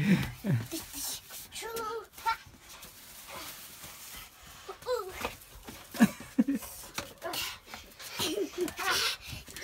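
Young children laugh and squeal playfully close by.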